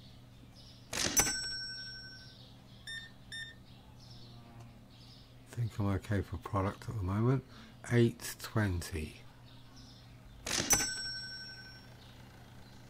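A card terminal gives a bright electronic chime.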